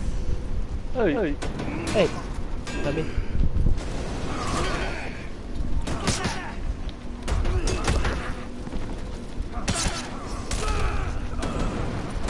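Metal weapons clash and strike repeatedly.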